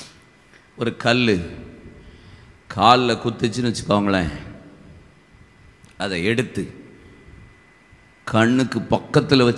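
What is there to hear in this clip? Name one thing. A middle-aged man preaches forcefully into a microphone in a large echoing hall, pausing between phrases.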